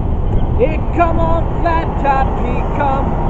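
A young man sings loudly.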